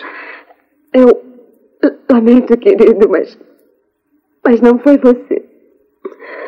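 A woman speaks tearfully close by.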